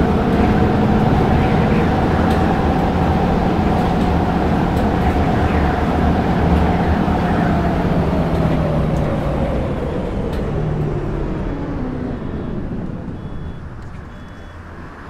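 A diesel city bus engine drives at speed, then winds down as the bus slows.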